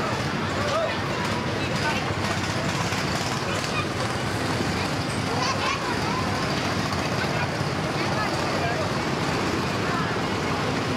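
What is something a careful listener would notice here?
A crowd chatters loudly all around.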